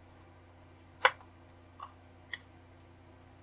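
A plastic model hull clicks and creaks as hands flex it.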